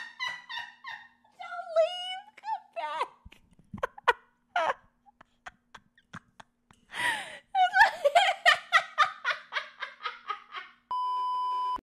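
A young woman laughs hysterically close to a microphone.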